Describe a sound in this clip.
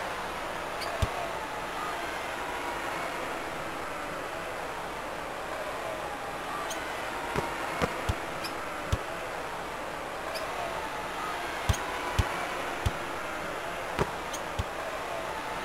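A basketball bounces sharply on a hardwood court.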